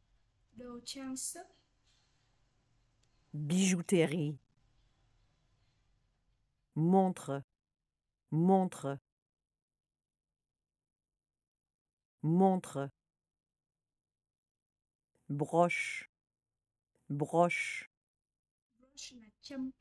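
A young man repeats short words slowly and clearly, close by.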